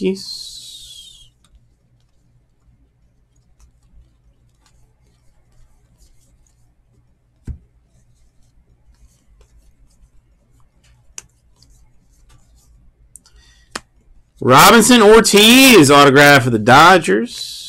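Trading cards rustle and slide against each other as they are shuffled by hand.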